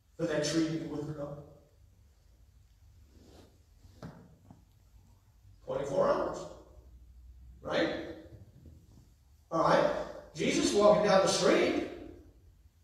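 A man speaks calmly in bursts, heard through a microphone in an echoing hall.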